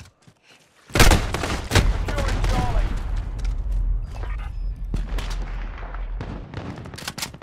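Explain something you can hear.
A loud explosion booms close by and rumbles away.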